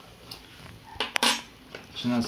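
A small object clicks onto a wooden table.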